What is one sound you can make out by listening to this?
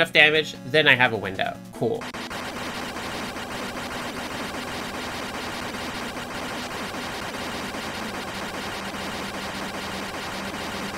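Retro video game music plays.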